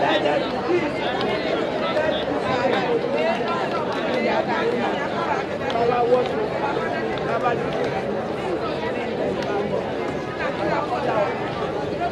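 A crowd of women chatters and sings loudly outdoors.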